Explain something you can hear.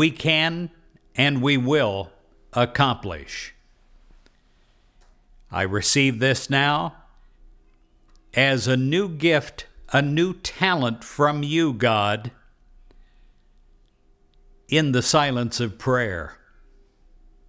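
An elderly man speaks slowly and clearly into a close microphone, with long pauses.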